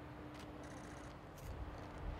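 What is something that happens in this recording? Footsteps of a group jogging on grass.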